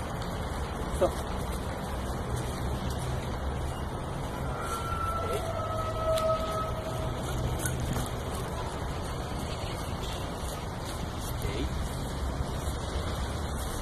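Dry leaves crunch under a man's footsteps.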